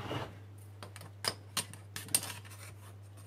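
A metal ruler clicks and taps against wood.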